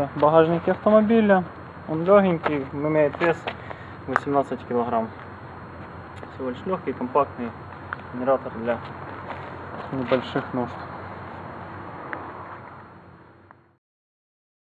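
A man speaks calmly and steadily close by.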